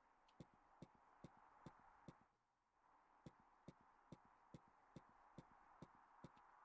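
Footsteps tap at a steady pace, pausing briefly once.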